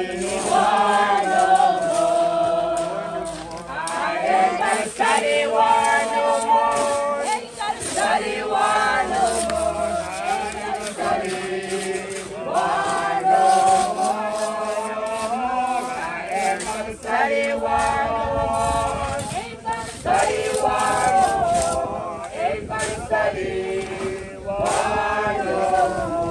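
A group of men and women sing together outdoors.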